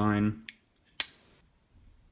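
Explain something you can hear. A folding knife blade clicks shut.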